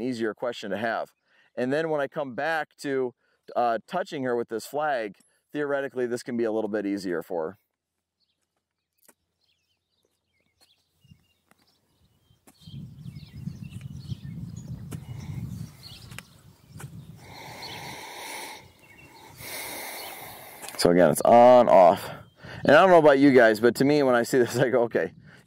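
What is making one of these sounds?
A man talks calmly and close by, as if into a microphone.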